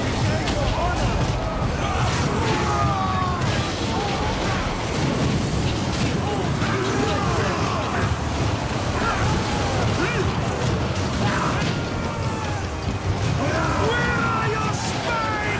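A large crowd of soldiers roars and shouts in battle.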